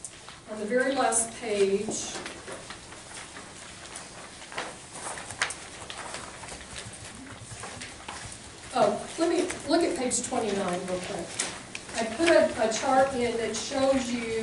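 A woman speaks at a distance in a room.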